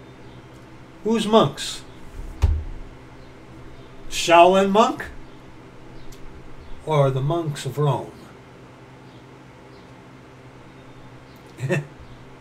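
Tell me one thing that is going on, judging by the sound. A middle-aged man speaks with animation in short bursts, close to a microphone.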